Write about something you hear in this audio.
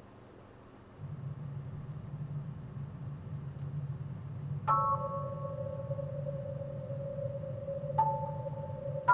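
Soft, low video game music plays steadily.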